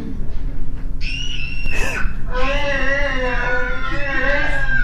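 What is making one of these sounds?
A young girl screams shrilly through loudspeakers.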